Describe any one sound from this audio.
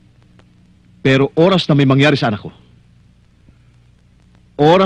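A man speaks firmly close by.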